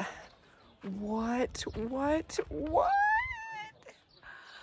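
A woman exclaims excitedly close to a microphone.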